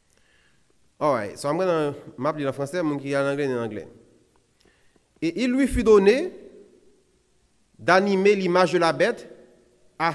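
A man speaks with emphasis into a microphone, in a slightly echoing room.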